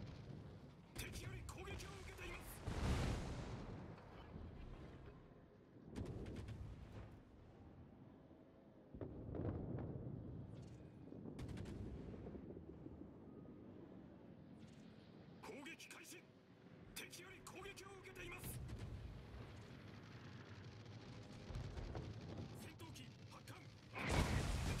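Anti-aircraft guns rattle in rapid bursts.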